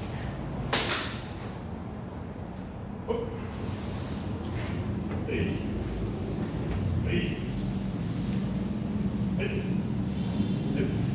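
Bare feet shuffle and thump softly on a padded mat.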